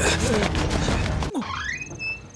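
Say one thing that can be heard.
Soldiers' boots pound on the ground as they run.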